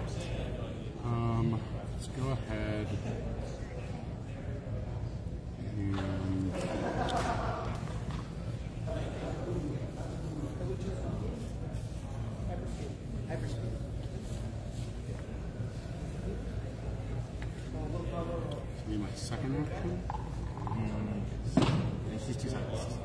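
A man talks calmly nearby.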